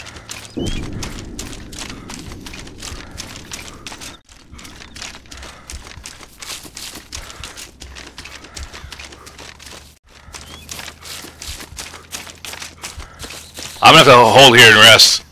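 Footsteps swish and rustle through tall grass at a steady walking pace.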